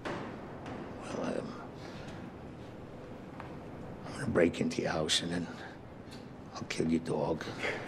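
An older man speaks gruffly and with emphasis, close by, in a room with a slight echo.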